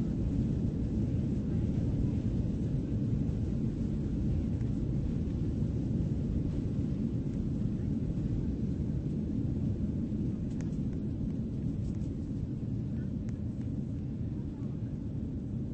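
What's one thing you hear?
A jet engine drones low and steadily.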